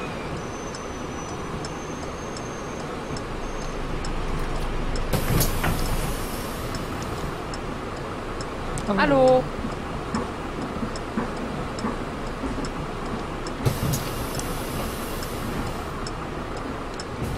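Windscreen wipers sweep across the glass.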